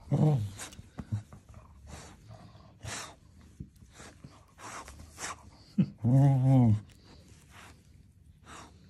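A cocker spaniel puppy chews and mouths a plush toy basketball.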